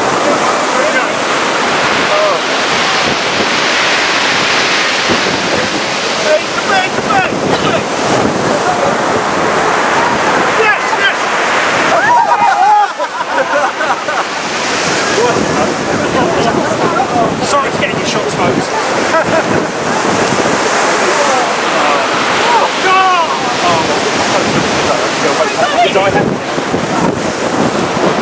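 Stormy waves crash against a sea wall outdoors in strong wind.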